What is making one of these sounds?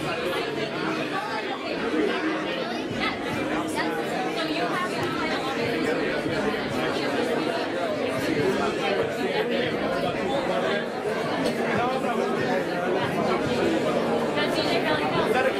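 A young boy answers into a microphone.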